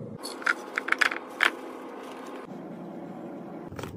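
Cocoa powder pours with a soft hiss into a plastic container.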